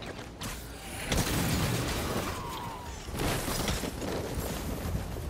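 Wind rushes past during a swing through the air.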